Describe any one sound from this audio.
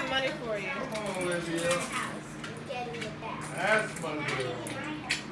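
Women talk casually nearby.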